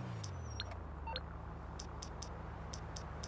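A phone beeps and clicks as its menu is used.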